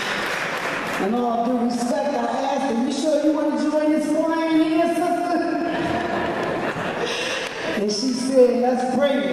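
A woman sings loudly through a microphone and loudspeaker.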